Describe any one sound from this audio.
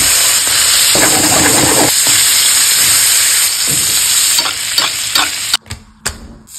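Steak sizzles loudly in a hot frying pan.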